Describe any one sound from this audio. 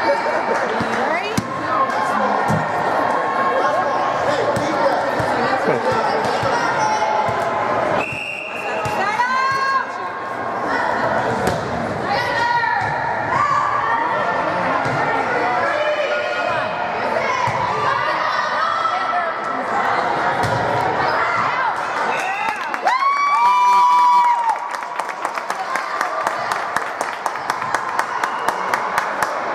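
Girls and spectators shout and cheer in an echoing gym.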